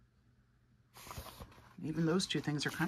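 A page of a book rustles as it turns.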